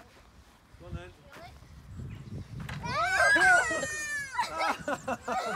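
Children laugh and chatter close by.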